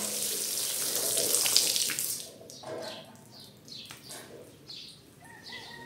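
Water pours and splashes onto a hard wet floor.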